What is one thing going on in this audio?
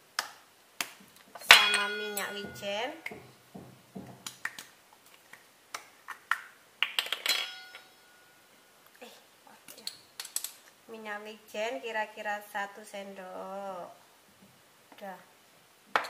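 A spoon clinks and scrapes in a bowl.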